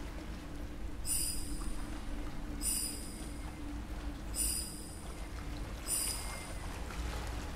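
Bright crystal chimes ring out one after another.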